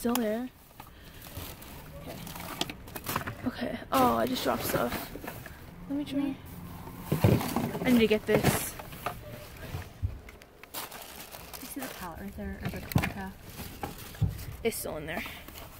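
Plastic bags and bubble wrap crinkle and rustle close by.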